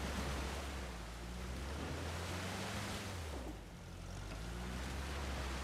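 Water splashes around a vehicle driving through a stream.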